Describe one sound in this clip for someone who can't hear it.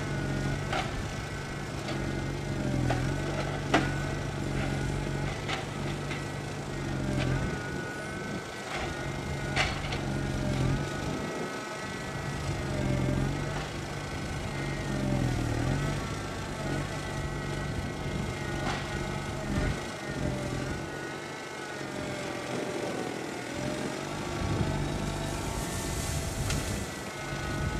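A forwarder's hydraulic crane whines as it swings.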